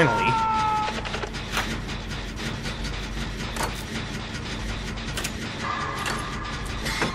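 A generator engine rattles and hums steadily.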